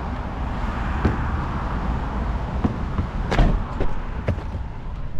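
Footsteps scuff on rough pavement.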